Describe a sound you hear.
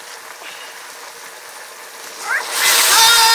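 Curry sizzles in a wok.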